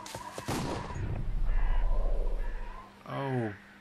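A man falls and lands with a heavy thud on the ground.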